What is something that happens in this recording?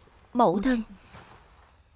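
A woman speaks briefly and calmly nearby.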